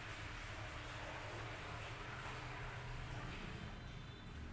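Water splashes and runs from a sprayer.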